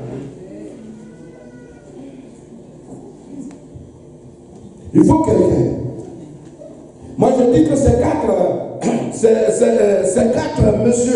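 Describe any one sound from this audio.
A middle-aged man preaches loudly and with animation into a microphone, heard through loudspeakers in an echoing hall.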